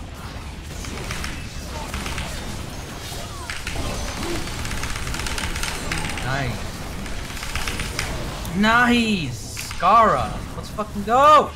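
Video game battle effects clash and crackle.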